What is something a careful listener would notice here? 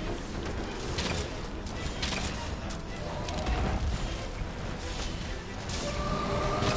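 Heavy weapon blows strike a large beast with sharp impacts.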